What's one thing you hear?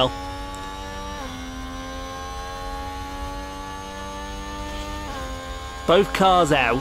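A racing car engine whines at high, steady revs, dipping briefly at each gear change.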